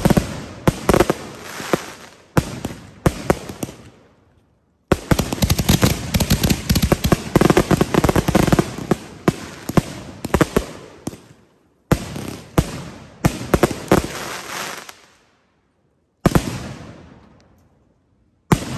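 Firecrackers go off in rapid crackling bursts.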